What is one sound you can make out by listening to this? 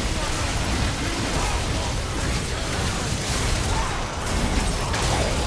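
Video game spells crackle and burst rapidly during a battle.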